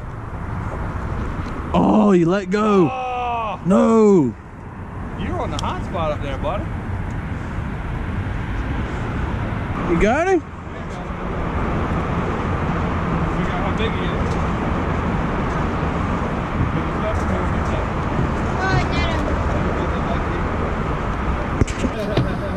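Wind blows steadily over open water.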